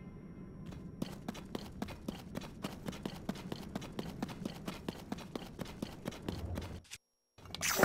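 Quick footsteps run steadily across the ground.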